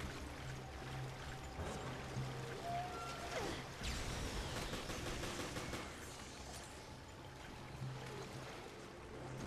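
Water sloshes as a figure wades through it.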